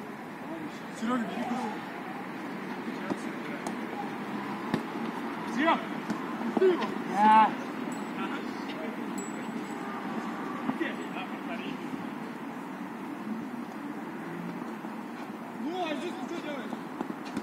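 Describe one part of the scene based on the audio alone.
Young men shout to each other outdoors in the distance.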